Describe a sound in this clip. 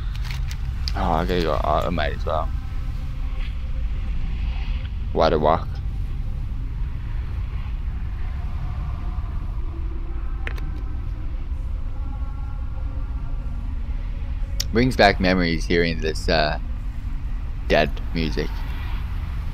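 An adult man talks in short bursts close to a headset microphone.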